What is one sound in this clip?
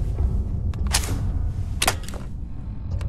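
A plug clicks into a socket.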